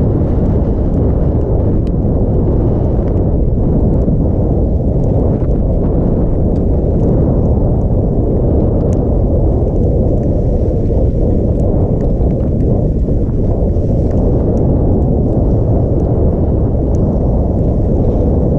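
Wind roars steadily against a microphone.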